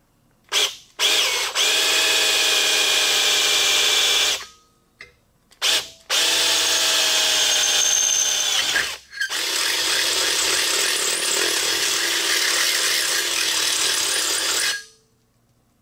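A power drill whines as it bores through metal in bursts.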